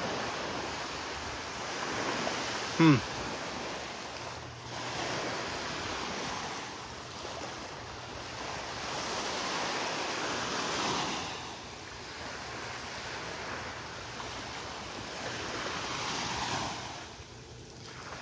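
Wind gusts through tree branches, rising and falling.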